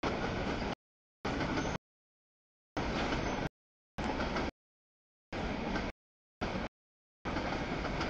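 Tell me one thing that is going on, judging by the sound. A freight train rumbles and clatters past close by, cutting in and out.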